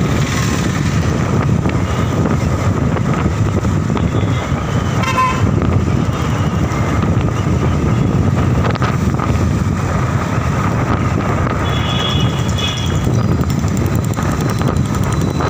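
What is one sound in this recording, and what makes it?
Wind buffets loudly against a moving motorbike.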